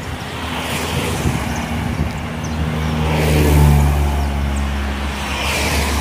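A truck rumbles past with a deep engine drone.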